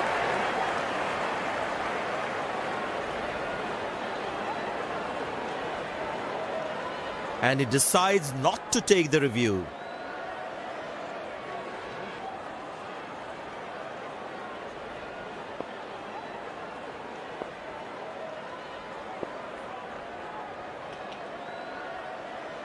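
A large stadium crowd murmurs and cheers.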